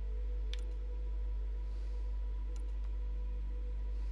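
A soft interface click sounds.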